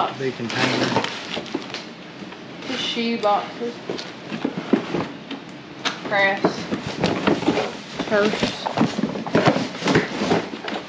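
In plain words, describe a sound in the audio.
Objects rustle and knock in a cardboard box.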